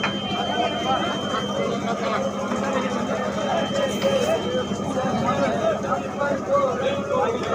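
A crowd of men talks and calls out outdoors.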